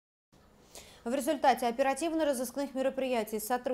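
A young woman speaks calmly and formally, close to a microphone.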